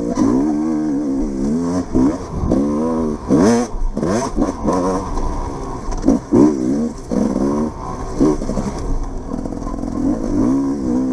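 A dirt bike engine revs up and down close by, rising and falling in pitch.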